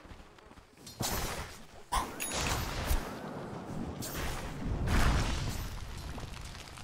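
Game spell effects and weapon blows burst loudly during a fight.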